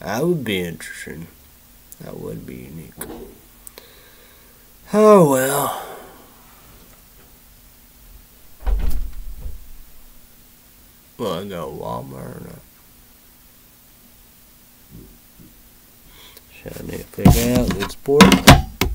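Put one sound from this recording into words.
A young man speaks close to a microphone, in short bursts with pauses.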